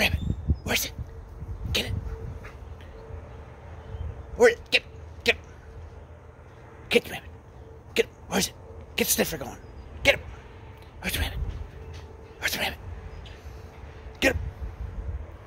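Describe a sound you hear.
A dog barks in short, sharp bursts outdoors.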